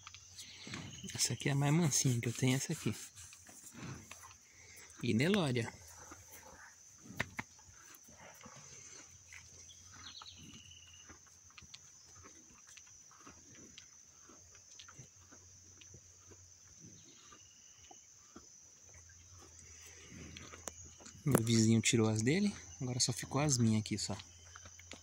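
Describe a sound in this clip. Cattle moo loudly nearby.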